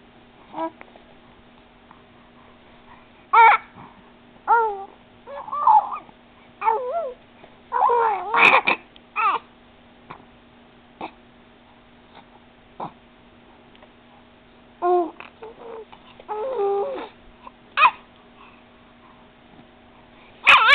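A baby coos and babbles close by in short bursts.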